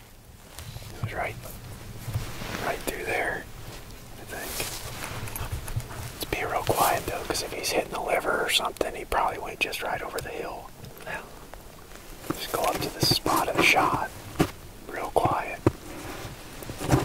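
A young man speaks quietly and calmly close by.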